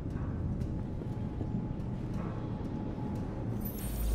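Footsteps creak softly on a wooden floor.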